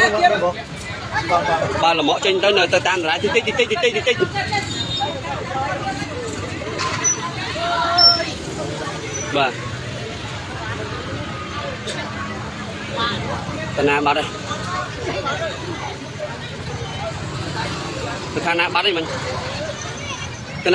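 A crowd of men and women talk and call out excitedly nearby.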